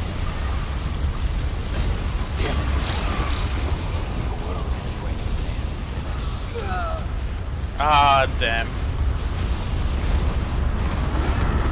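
Fire crackles and roars.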